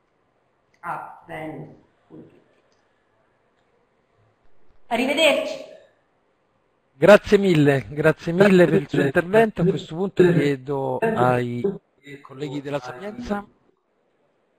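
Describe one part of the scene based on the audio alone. A man speaks over an online call, in short bursts with pauses.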